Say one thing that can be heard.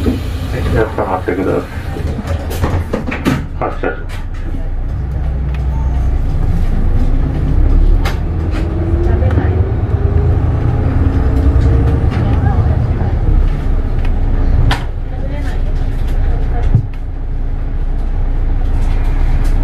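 A bus engine rumbles low and rises as the bus pulls away.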